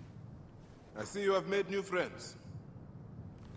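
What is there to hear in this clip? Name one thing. A man speaks calmly and close.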